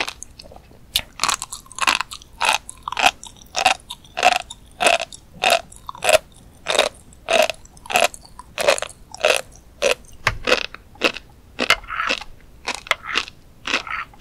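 A young woman chews crunchy food close to a microphone, with loud crisp crackles in a steady rhythm.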